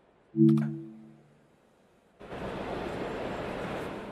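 Train doors slide open.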